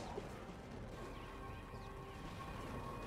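A laser turret fires a humming beam.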